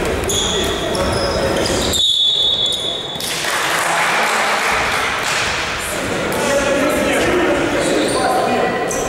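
Young men call out to each other in a large echoing hall.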